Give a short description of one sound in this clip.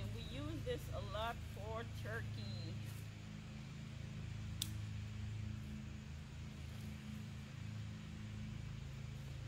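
Leaves rustle softly as herbs are pulled from a plant bed.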